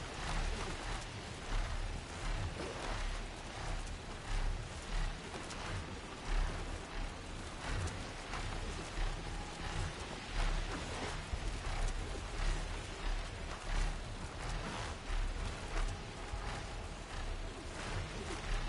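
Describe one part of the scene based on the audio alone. Large mechanical wings beat with deep, rhythmic whooshes.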